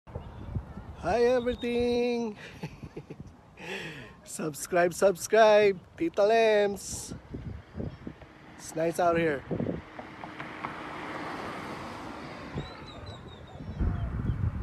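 A man talks with animation close to a phone's microphone, outdoors.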